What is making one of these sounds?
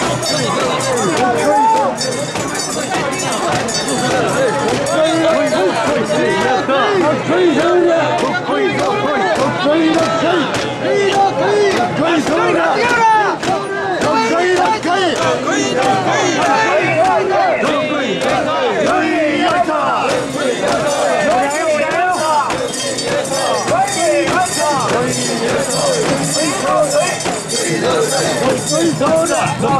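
A large crowd of men and women chant and shout loudly together, close by.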